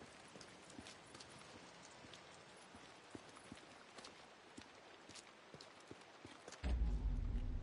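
Footsteps tread softly on hard ground.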